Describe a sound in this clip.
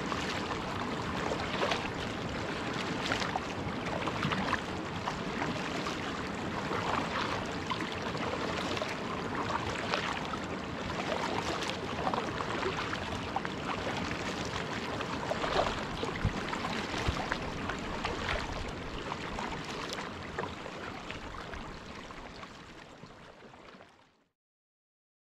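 A kayak paddle dips and splashes rhythmically in calm water.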